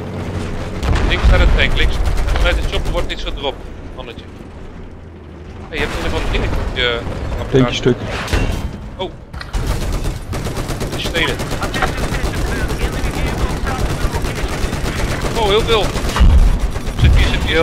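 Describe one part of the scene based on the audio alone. A tank cannon fires with heavy booms.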